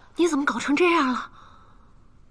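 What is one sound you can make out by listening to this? A young woman asks a question with concern, close by.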